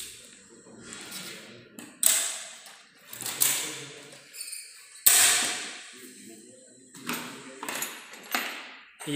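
Metal frame parts clank and rattle as a wheeled chair is handled.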